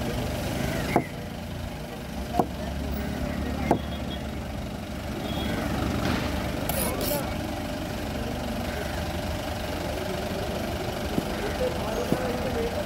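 A knife chops through fish on a wooden board with sharp knocks.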